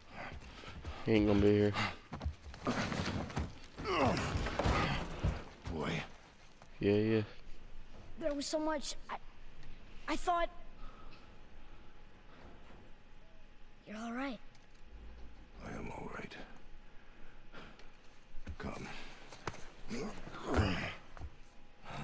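A man speaks in a deep, low voice nearby.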